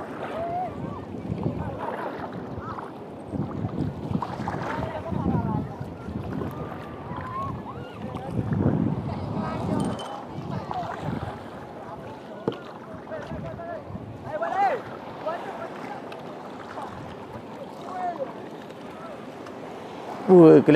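Small waves slosh and lap against a floating board.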